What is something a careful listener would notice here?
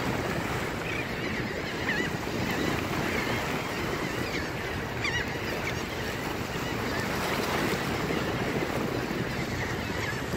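Wind blows steadily across an open shoreline.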